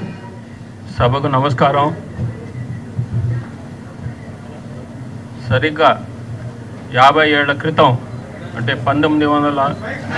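An elderly man speaks calmly into a microphone, heard through loudspeakers with pauses between phrases.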